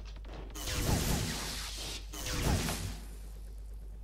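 Laser guns fire in rapid bursts with loud blasts.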